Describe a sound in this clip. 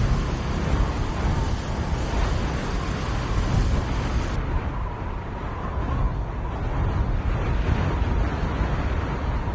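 Wind rushes steadily past a gliding parachutist.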